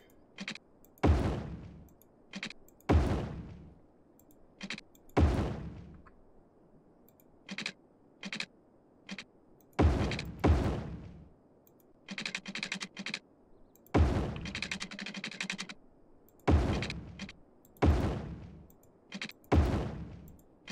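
Short whooshing thuds sound each time a road is placed.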